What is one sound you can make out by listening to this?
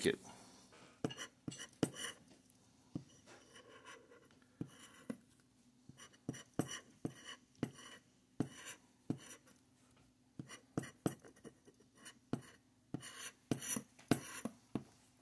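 A plastic scraper scratches at a card in short, rasping strokes.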